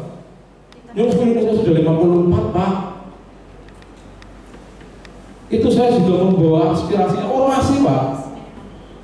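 A man speaks calmly into a microphone in a room.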